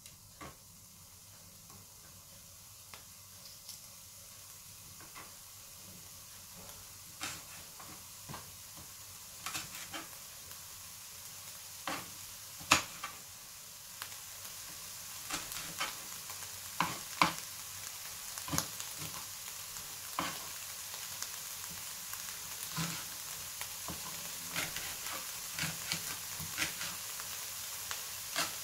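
Onions sizzle and crackle in a hot pan, the popping growing louder and more frequent.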